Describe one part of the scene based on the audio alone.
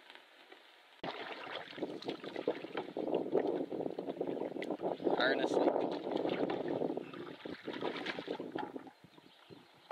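Water splashes and laps against a moving canoe.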